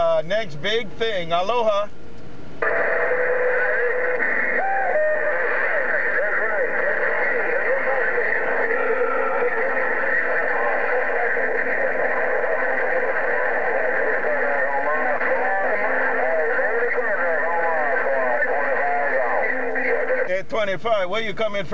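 A CB radio loudspeaker crackles with garbled, overlapping transmissions and warbling tones.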